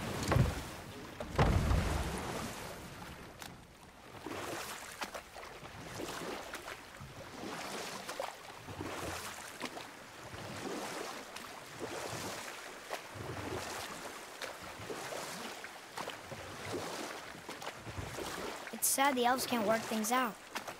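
Oars splash steadily in calm water.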